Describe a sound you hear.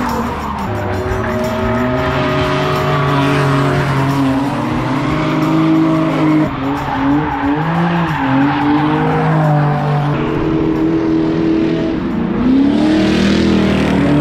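Car tyres squeal on pavement while sliding.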